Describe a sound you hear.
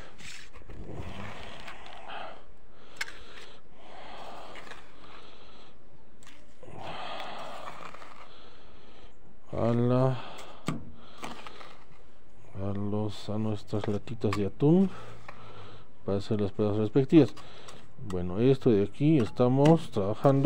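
A trowel scrapes and stirs wet mortar.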